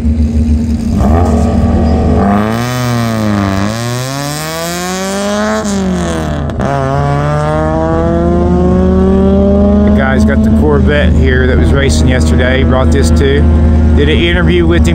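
A car engine revs hard, rising and falling in pitch, and roars as the car speeds away.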